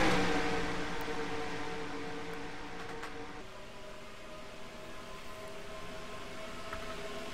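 Race car engines roar steadily as a pack of cars drives around the track.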